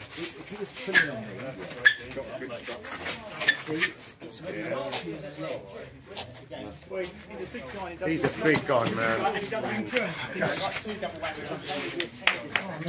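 Hands slap and strike against arms in sharp smacks.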